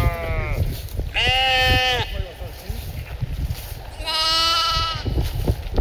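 Soil and grass rustle as a sheep scrambles out of a ditch.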